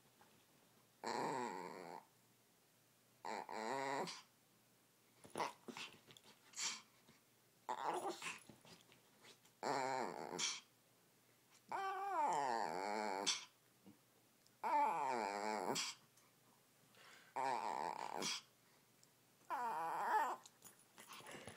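A small dog yowls and whines close by in short bursts.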